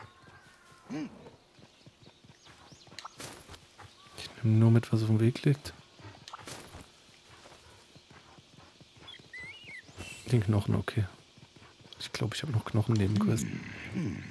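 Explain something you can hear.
Footsteps crunch over grass and dirt.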